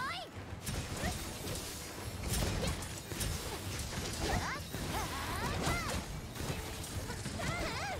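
Weapon strikes clash and crack against a monster in rapid bursts.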